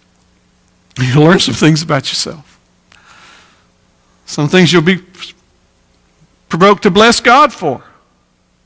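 A middle-aged man preaches with animation into a microphone, in bursts with pauses.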